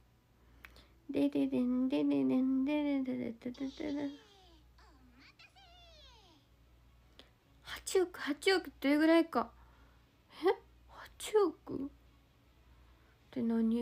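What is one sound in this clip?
A young woman speaks softly and cheerfully close to the microphone.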